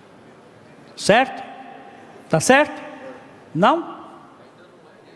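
A man calls out loudly through a microphone in a large echoing hall.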